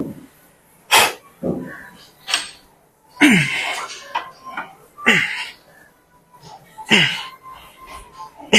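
A weight machine clanks as weights drop.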